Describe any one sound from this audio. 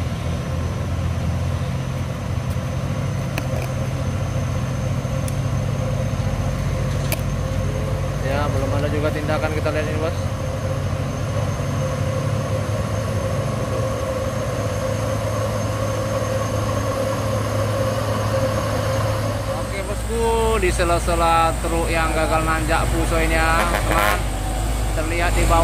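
A heavy truck engine rumbles low and steady nearby.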